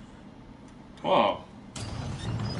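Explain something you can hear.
A heavy metal latch thuds open.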